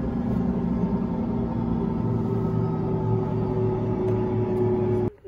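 Helicopter rotor blades thump in a fast, even beat.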